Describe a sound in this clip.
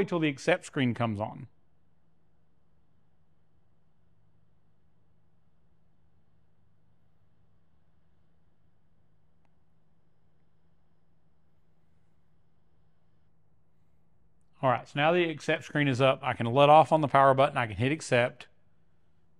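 A man speaks calmly and close up, through a clip-on microphone.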